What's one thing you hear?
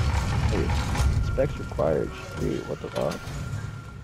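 A heavy metal mechanism grinds and clanks.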